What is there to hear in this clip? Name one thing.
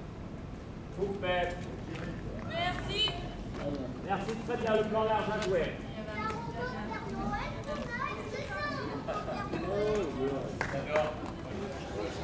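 Several adults chat casually nearby outdoors.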